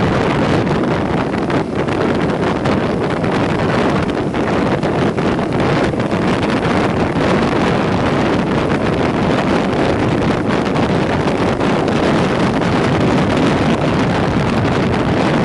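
Wind rushes loudly past a rider's helmet.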